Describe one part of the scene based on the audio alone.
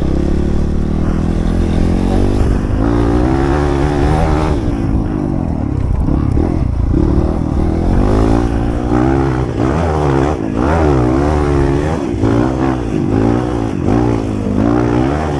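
A motorbike engine revs up and down.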